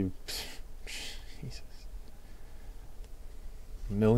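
Trading cards slide and rustle against each other in someone's hands.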